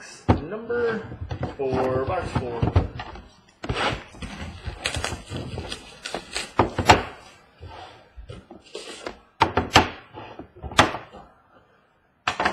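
Cardboard packaging scrapes and rustles under handling hands.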